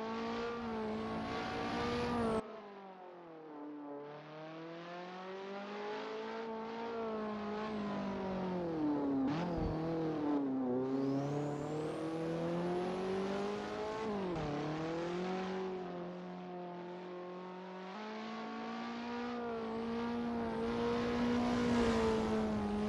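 A racing car engine roars, rising and falling in pitch as it shifts gears and takes corners.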